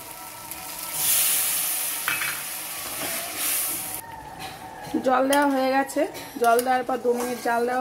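Water hisses and bubbles as it hits the hot pan.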